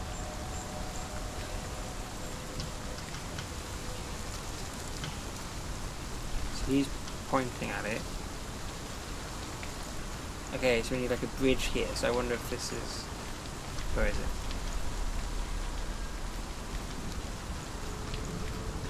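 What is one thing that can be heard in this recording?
Footsteps crunch softly on a dry forest path.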